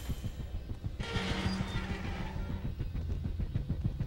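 A metal gate creaks open.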